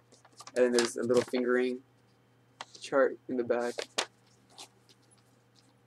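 Paper rustles in a young man's hands.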